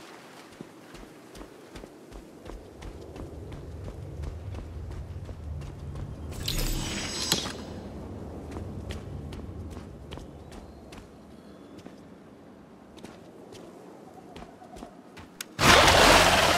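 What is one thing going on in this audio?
Footsteps patter quickly over rocky ground.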